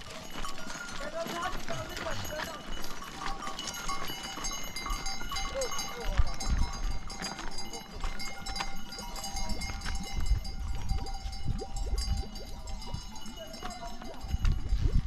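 Goat hooves clatter on loose stones.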